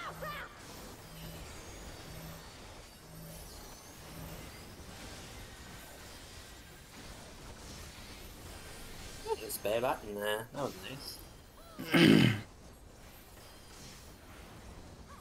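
Magical spell effects whoosh and chime in bursts.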